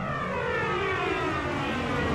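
A blast booms and rumbles.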